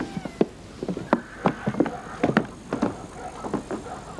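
Footsteps thud on wooden steps.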